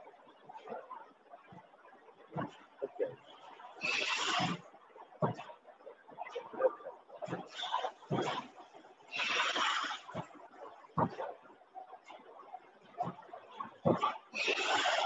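Plastic bottles knock and clatter as they move through a machine.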